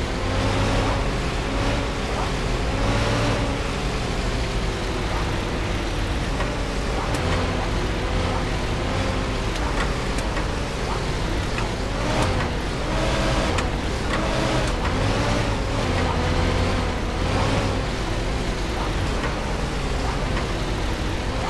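A helicopter engine drones steadily with a thumping rotor.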